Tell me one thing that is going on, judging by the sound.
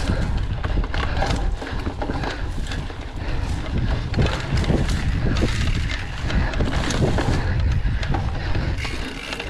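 Bicycle tyres rattle and crunch over a rough dirt trail.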